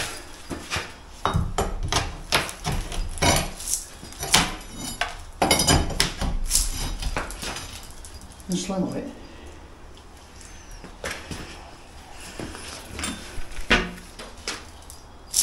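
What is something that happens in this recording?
A scraper rasps along a wooden frame.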